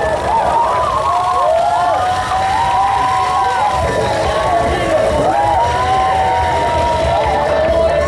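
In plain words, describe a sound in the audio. Water splashes down onto a person from above.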